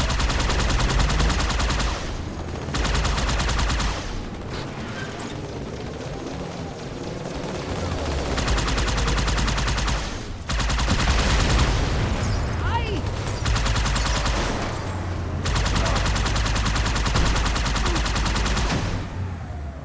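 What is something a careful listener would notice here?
Energy guns fire in rapid bursts.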